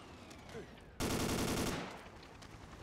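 A gun fires a short rapid burst of shots.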